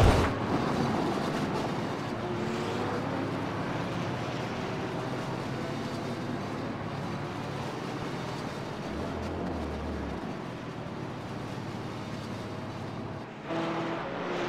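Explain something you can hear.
A race car engine revs loudly.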